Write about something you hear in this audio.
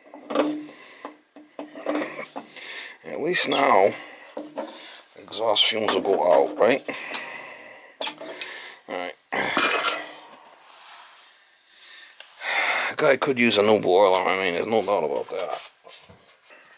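Metal pliers click and scrape against a metal plate.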